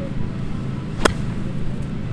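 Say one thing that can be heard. A golf club strikes a ball off the grass with a sharp click.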